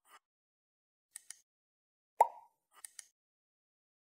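A mouse button clicks.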